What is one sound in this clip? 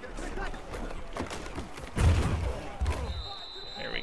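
Football players collide with heavy thuds during a tackle.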